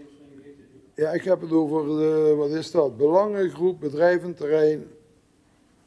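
A middle-aged man speaks into a microphone.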